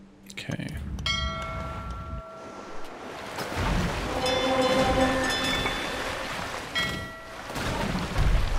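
Short chiming game tones ring out.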